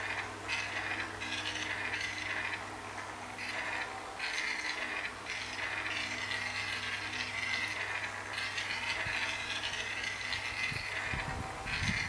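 Upbeat game music plays from a small tablet speaker.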